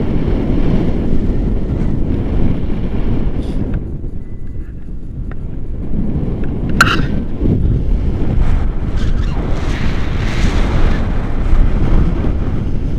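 Wind rushes and buffets loudly against a microphone.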